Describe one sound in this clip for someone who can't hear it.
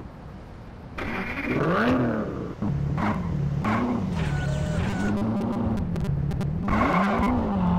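A car engine starts and revs up and down.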